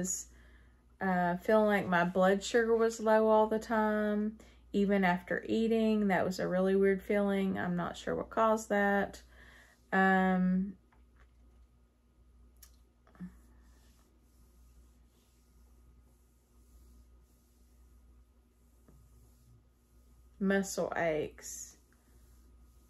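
A middle-aged woman talks calmly close to a microphone.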